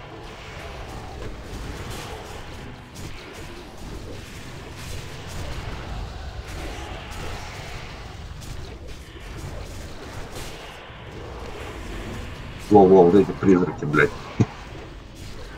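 Magic spells crackle and whoosh.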